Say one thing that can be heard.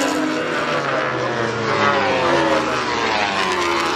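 A second racing motorcycle engine whines through a corner.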